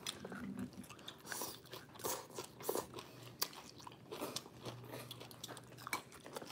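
A woman chews and slurps food noisily close by.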